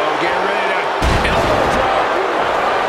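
A heavy body slams onto a wrestling ring mat with a thud.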